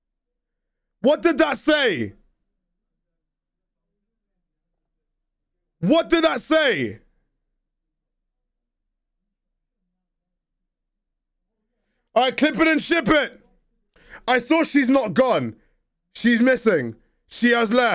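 A young man speaks in short, lively bursts close to a microphone.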